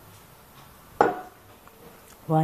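A cup clinks against a metal pot.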